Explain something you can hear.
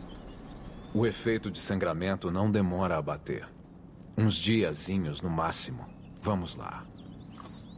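A man speaks calmly in a game's dialogue.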